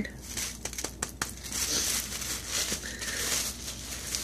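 Plastic wrapping crinkles in a woman's hands.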